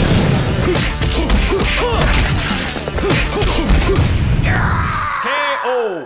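Punches and kicks land with heavy thuds in a fighting game.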